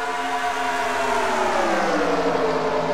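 A race car engine drops in pitch as a car passes by.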